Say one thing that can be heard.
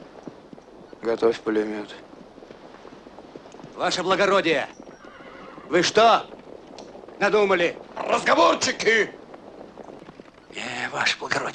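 A man speaks loudly and firmly, close by, in short phrases.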